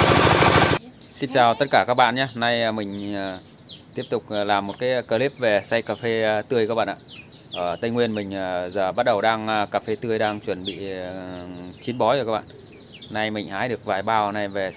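A man talks with animation, close to the microphone.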